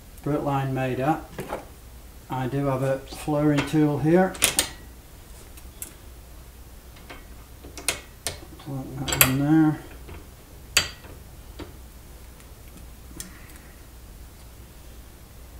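Metal tools clink and knock on a workbench.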